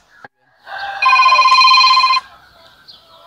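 A phone rings briefly.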